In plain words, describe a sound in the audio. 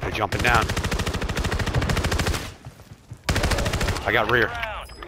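An automatic rifle fires rapid bursts at close range.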